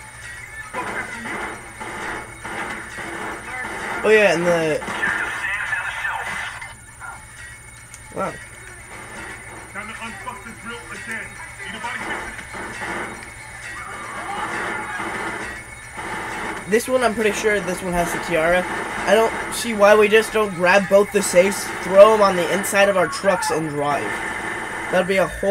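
Video game sound plays from a television speaker.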